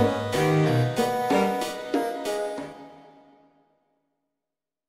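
Game music plays with a bright melody and then fades out.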